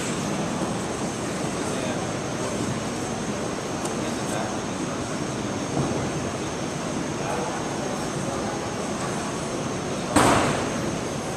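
Heavy cotton jackets rustle as two grapplers struggle.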